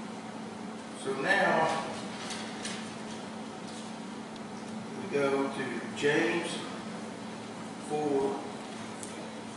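A man speaks calmly into a microphone in a large echoing room, with long pauses.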